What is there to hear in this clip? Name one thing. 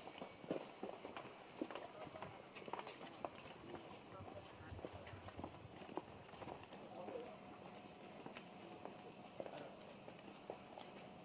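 Several people's footsteps shuffle along a path outdoors.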